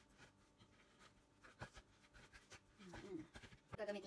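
Hands knead and roll soft dough on a board.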